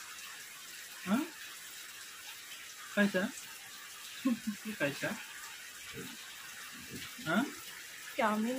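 A young child babbles and makes short vocal sounds close by.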